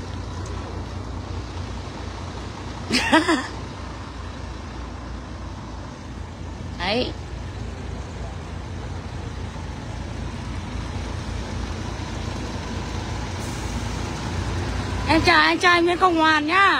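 A bus engine idles with a low, steady rumble.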